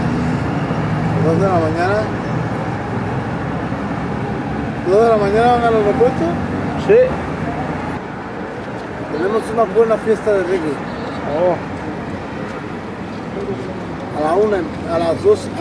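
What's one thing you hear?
Traffic hums steadily along a wet road.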